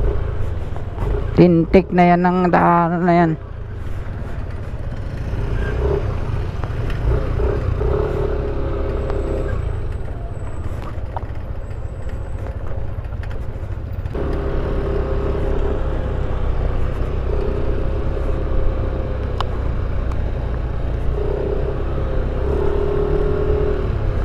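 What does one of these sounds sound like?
Tyres rumble over a rough dirt road.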